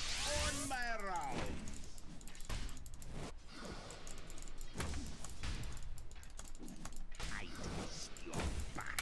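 Magic effects whoosh and crackle in a video game battle.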